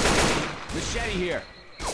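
A rifle fires a short burst.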